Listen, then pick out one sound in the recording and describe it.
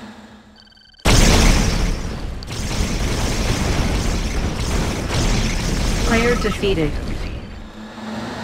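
A large building explodes and collapses with a loud rumbling roar.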